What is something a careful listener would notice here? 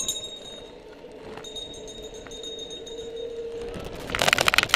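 A bicycle rolls smoothly along pavement with a faint steady whir.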